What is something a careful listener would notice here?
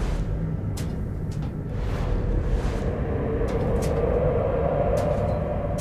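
Footsteps creak softly on a wooden floor.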